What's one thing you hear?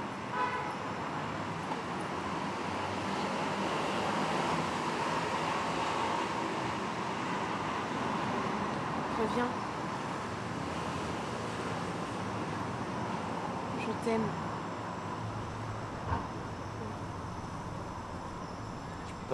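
A young woman talks softly close by.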